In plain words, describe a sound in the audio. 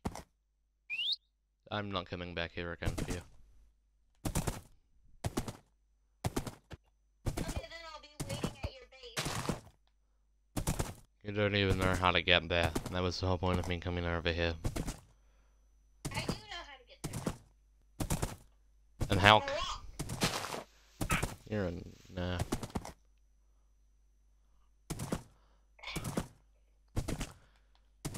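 A horse's hooves thud on grass as it trots along.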